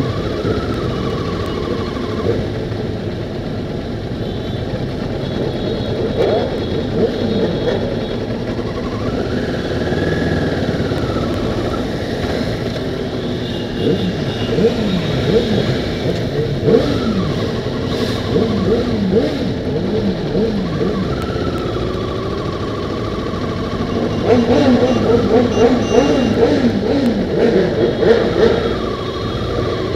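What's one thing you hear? Motorcycle engines rumble and rev close by.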